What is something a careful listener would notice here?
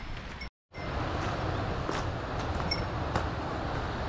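Footsteps crunch on a stone path outdoors.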